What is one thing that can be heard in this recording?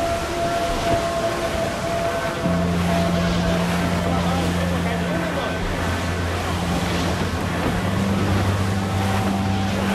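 Wind blows steadily through a ship's rigging.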